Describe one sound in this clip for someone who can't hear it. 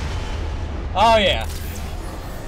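A young man exclaims briefly into a headset microphone.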